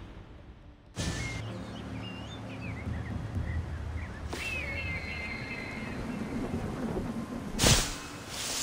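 Wind rushes loudly during a long fall through the air.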